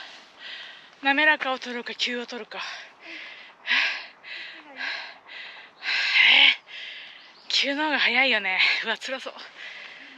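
A woman speaks breathlessly close by.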